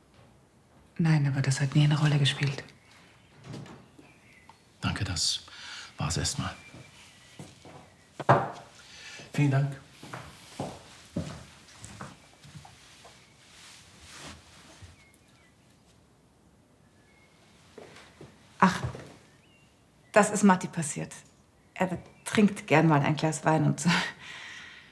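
A middle-aged man speaks in a low, calm voice, close by.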